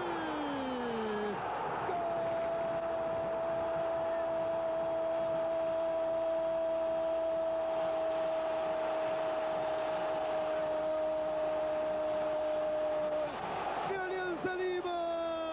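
A large stadium crowd cheers and roars.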